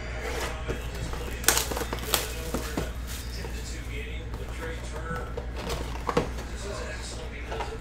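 Cardboard and plastic wrapping rustle and crinkle as a box is handled and opened.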